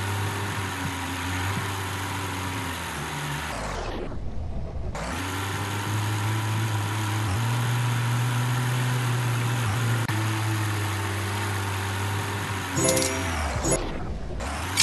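A car engine drones steadily, rising and falling slightly in pitch.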